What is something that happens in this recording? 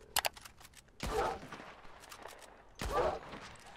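A rifle fires twice.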